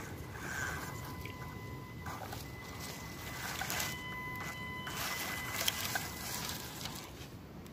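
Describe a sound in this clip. The electric motor of a radio-controlled crawler truck whines.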